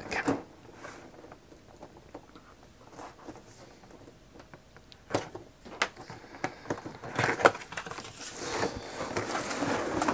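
Hands tap and slide across a cardboard box.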